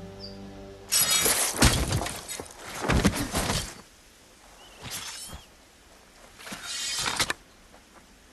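A sword slashes and clashes in a fight.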